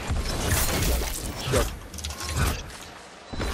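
A weapon fires in bursts with crackling blasts.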